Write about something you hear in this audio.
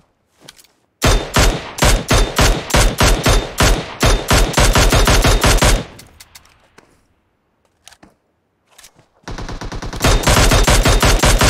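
A rifle in a video game fires rapid bursts.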